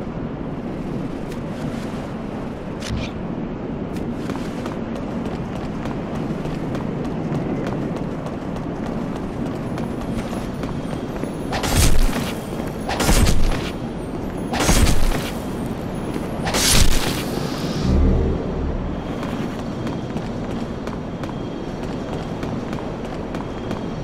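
Footsteps of an armoured figure crunch on rock.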